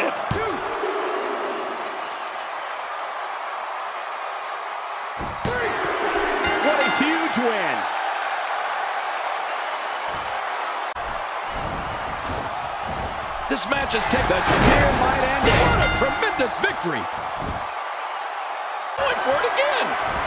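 A large crowd cheers and roars in an arena.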